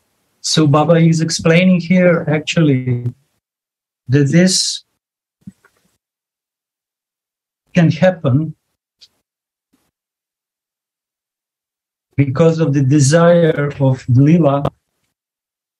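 A man speaks calmly in short bursts, heard through an online call.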